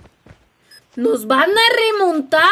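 A young woman exclaims loudly and with animation close to a microphone.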